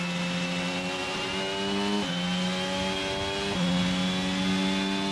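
A racing car engine roars at high revs, climbing in pitch and dropping abruptly with each gear shift.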